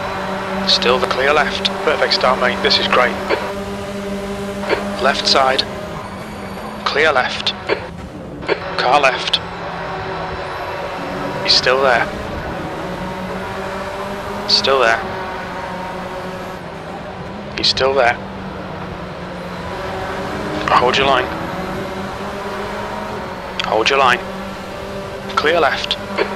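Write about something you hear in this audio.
A racing engine revs sharply up and down as gears shift.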